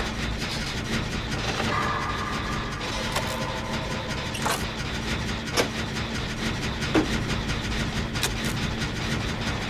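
A generator engine hums and clanks.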